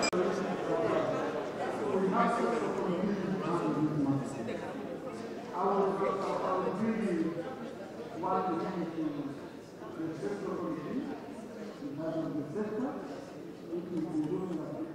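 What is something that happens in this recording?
A man speaks calmly and steadily into a microphone.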